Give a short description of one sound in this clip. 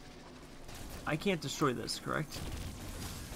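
A man speaks with animation close to a headset microphone.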